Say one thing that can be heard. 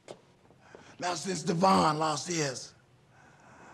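A man speaks loudly and forcefully nearby.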